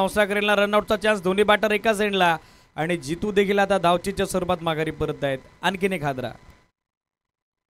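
A woman commentates with animation through a microphone.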